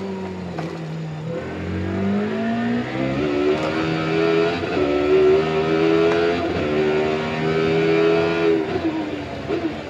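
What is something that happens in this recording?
A racing car engine roars through loudspeakers, revving up and shifting gears again and again.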